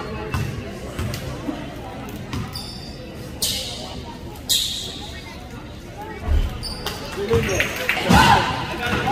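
A basketball bounces with dull thumps on a wooden floor.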